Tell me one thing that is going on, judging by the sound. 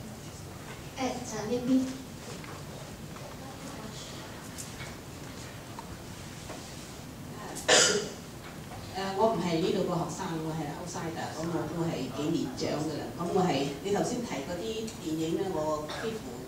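A woman speaks calmly into a microphone in an echoing room.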